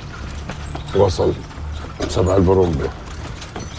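An elderly man speaks briefly and calmly.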